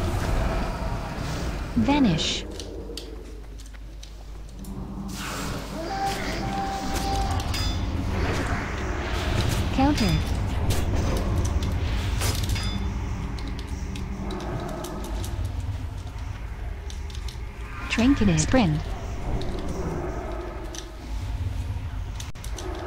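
Spells crackle and whoosh in a video game.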